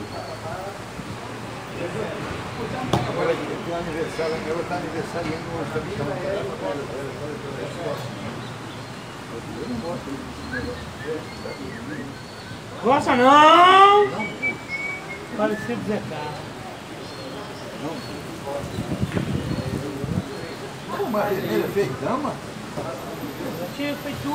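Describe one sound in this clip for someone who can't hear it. Elderly men talk casually nearby.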